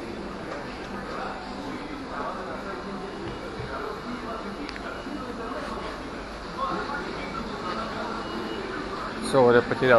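Many people talk in a murmur throughout a large echoing indoor hall.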